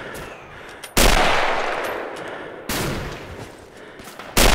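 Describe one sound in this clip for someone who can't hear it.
A rifle fires loudly close by.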